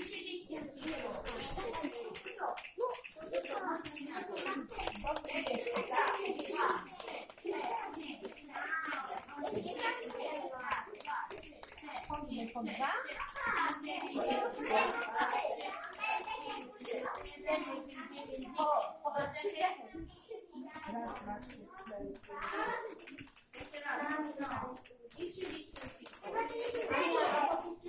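Children talk and chatter nearby in a room.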